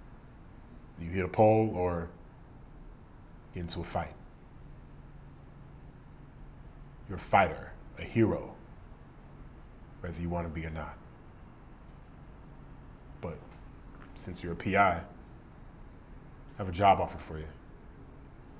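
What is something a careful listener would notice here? A man speaks calmly and quietly in short phrases, close by.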